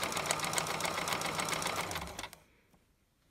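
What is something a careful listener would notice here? A sewing machine hums and rattles rapidly as it stitches.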